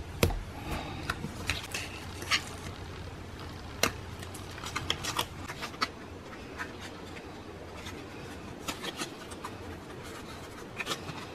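Paper rustles and crinkles as hands fold and handle it.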